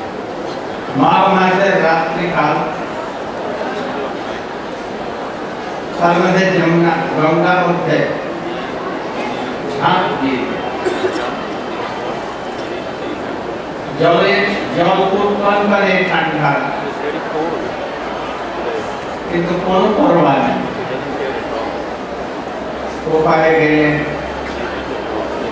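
An elderly man speaks slowly through a microphone in short phrases with pauses.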